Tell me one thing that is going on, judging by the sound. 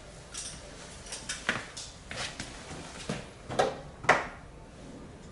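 Plastic parts of a scooter click and rattle as someone handles it close by.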